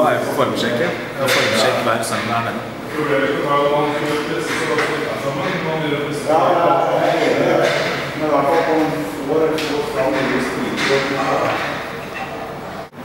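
A young man talks casually up close.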